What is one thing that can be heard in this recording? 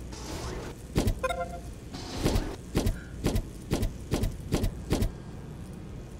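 Heavy mechanical thuds sound as structures snap into place in a game.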